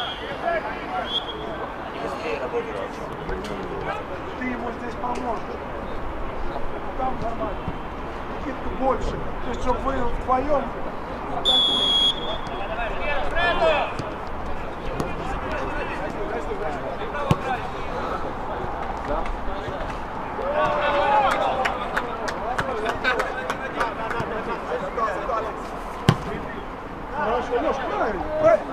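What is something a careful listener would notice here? Men shout and call to each other outdoors across an open field.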